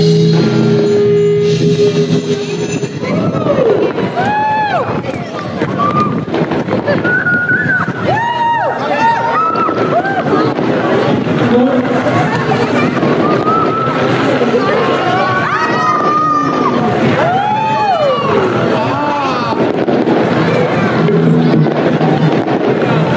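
A band plays loud amplified music.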